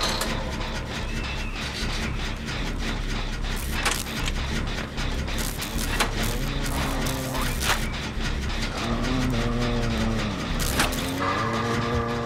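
A machine engine rumbles and rattles steadily nearby.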